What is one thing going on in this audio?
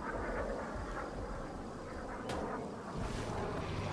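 Leafy plants rustle as someone pushes through them.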